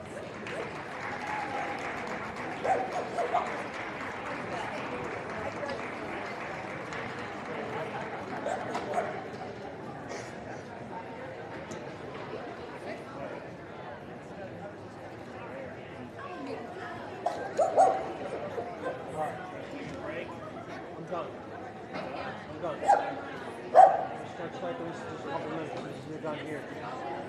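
A crowd murmurs steadily in a large indoor hall.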